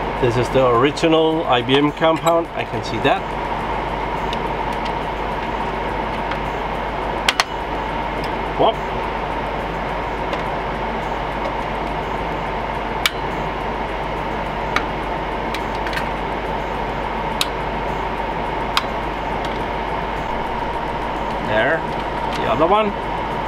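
Metal parts click and clatter as they are fitted into place.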